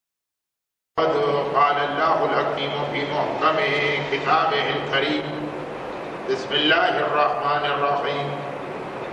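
A man speaks steadily through a microphone, as if giving a talk.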